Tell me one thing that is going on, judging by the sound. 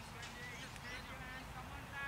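A cricket bat hits a ball with a sharp knock in the distance.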